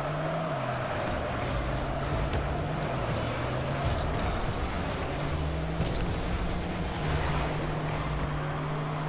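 A game car's engine hums and revs steadily.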